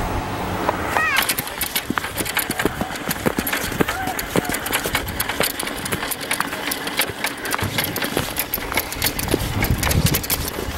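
Small boots crunch on snow as a child walks.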